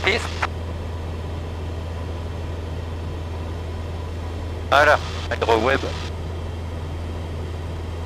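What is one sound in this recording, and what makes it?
An aircraft engine drones steadily and low.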